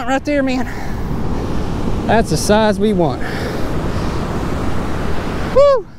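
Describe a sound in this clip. Waves wash onto a beach nearby.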